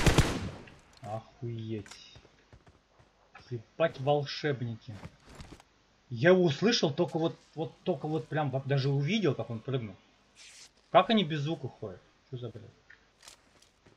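A man talks with animation into a close microphone.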